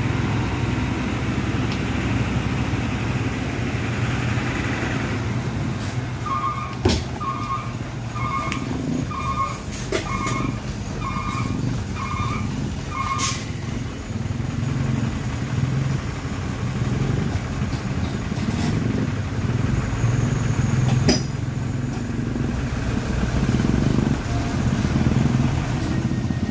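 A heavy truck engine rumbles low and steadily.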